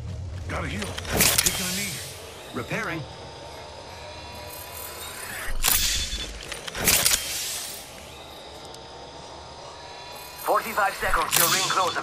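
A medical syringe hisses and clicks during healing in a video game.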